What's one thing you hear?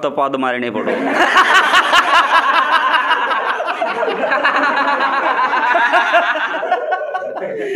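A group of young men laugh loudly together.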